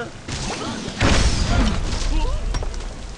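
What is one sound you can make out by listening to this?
Wooden blocks and stone crash and tumble down with a loud rumble.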